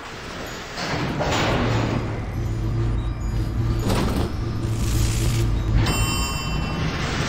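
An elevator hums and rumbles as it moves.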